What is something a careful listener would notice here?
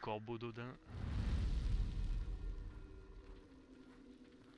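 A heavy wooden gate rumbles and creaks open.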